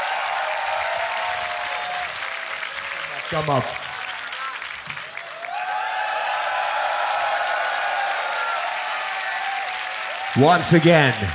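A crowd cheers loudly in a large hall.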